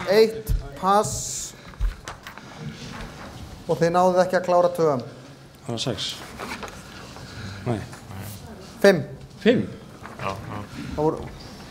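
A man speaks slowly through a microphone.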